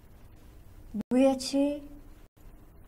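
A young woman speaks a few words quietly nearby.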